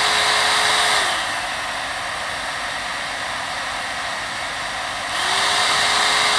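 A hair dryer's motor drops to a softer hum, then rises again.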